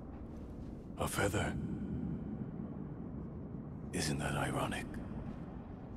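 A wounded man speaks weakly and hoarsely, close by.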